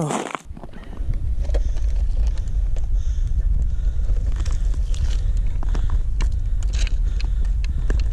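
A fishing trap rattles and clicks as a hand lifts it from an ice hole.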